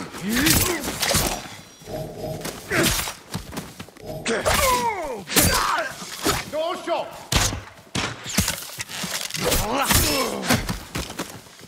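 Swords clash and slash again and again in a fight.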